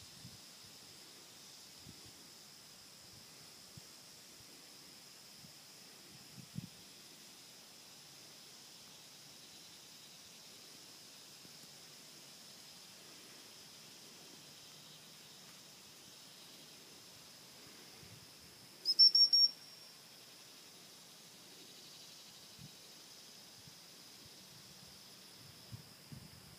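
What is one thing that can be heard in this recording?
A light breeze brushes softly against the microphone outdoors.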